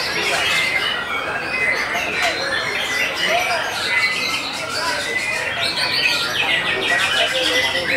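A songbird sings close by in rapid, varied whistles and trills.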